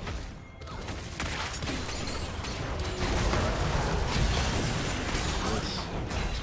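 Game spell blasts and hits crackle and boom in a fast battle.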